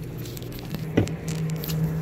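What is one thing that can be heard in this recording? A bottle knocks down onto a counter.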